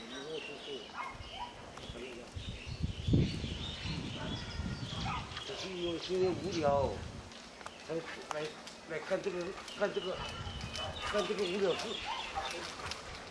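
A man talks loudly, close by, outdoors.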